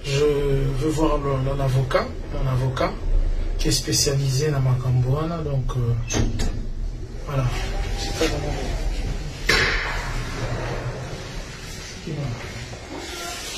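A man speaks close to the microphone, his voice slightly muffled.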